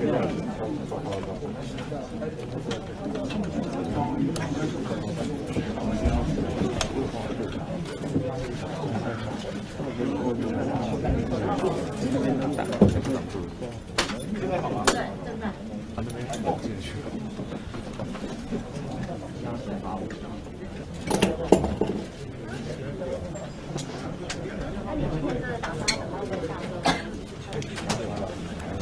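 A crowd murmurs quietly nearby.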